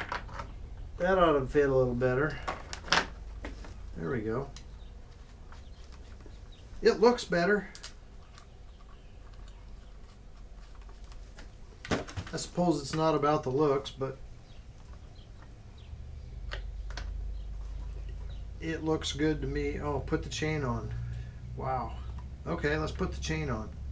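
A man talks calmly and close by, explaining in short bursts.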